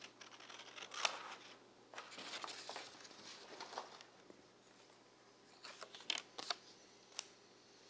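Scissors snip through stiff paper.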